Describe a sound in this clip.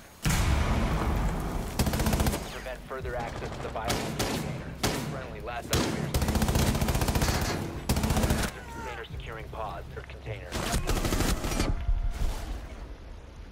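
Gunshots crack loudly in rapid bursts.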